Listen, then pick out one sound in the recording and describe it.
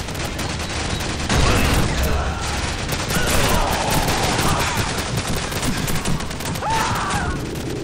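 Gunshots bang rapidly at close range.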